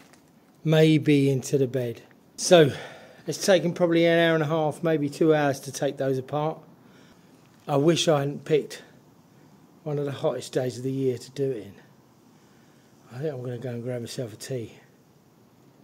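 A middle-aged man talks calmly close to the microphone.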